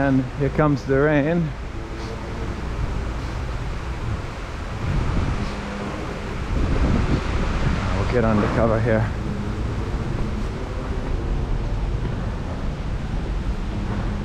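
Traffic rumbles steadily outdoors.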